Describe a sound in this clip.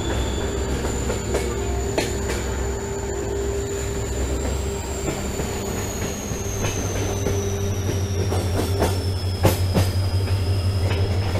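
Train wheels clatter and knock over the rail joints.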